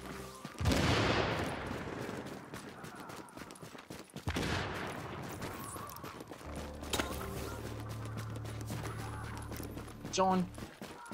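Footsteps crunch through snow at a run.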